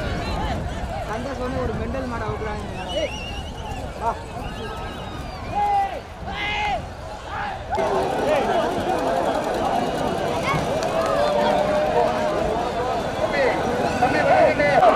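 A large outdoor crowd shouts and cheers with excitement.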